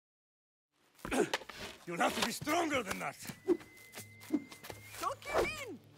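A man speaks forcefully.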